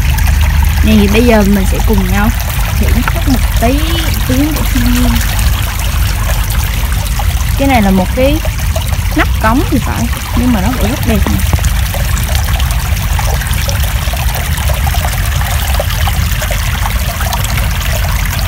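Water splashes and gurgles among rocks close by.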